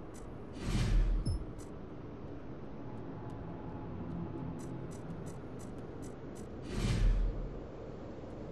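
Soft interface clicks tick as cards are browsed.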